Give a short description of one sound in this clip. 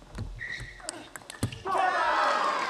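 A ping-pong ball clicks sharply back and forth off paddles and a table.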